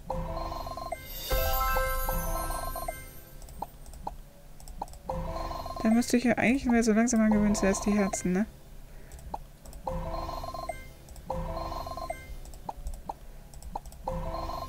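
Cheerful electronic game music plays with bright chimes.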